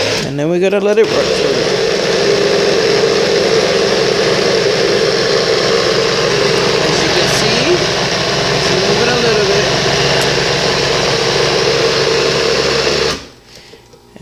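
A blender motor whirs loudly and steadily, then stops.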